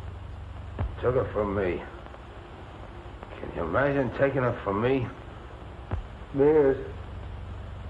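A man speaks in a low, tired voice.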